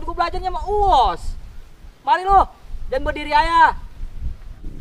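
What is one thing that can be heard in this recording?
A young man calls out loudly with animation.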